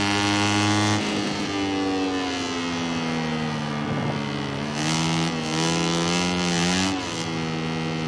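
A motorcycle engine drops in pitch as the rider slows for a bend, then revs up again.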